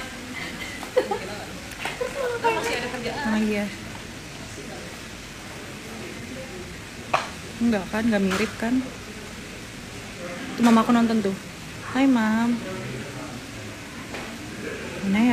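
A young woman speaks casually and close to a phone microphone.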